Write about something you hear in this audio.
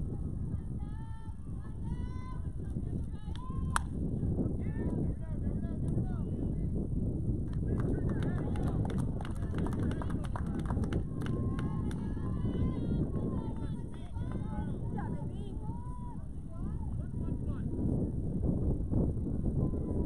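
Young players shout and call out across the field.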